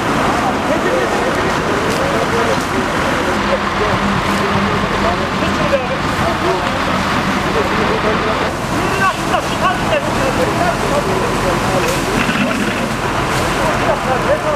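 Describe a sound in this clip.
Water sprays hard from a fire hose.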